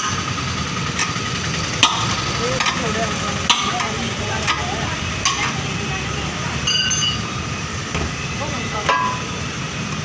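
Metal tools clang and knock against a tractor wheel rim.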